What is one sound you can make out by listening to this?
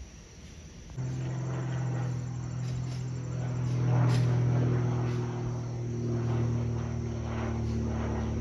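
A single-engine propeller plane drones as it flies overhead.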